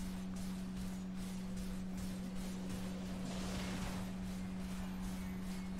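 Magic blasts and weapon clashes crackle and burst in a fierce battle.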